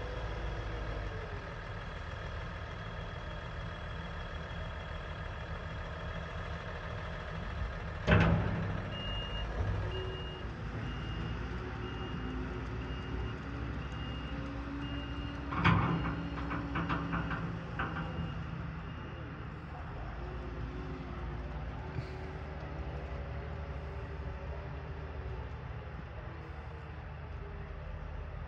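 A tractor engine rumbles steadily in the distance.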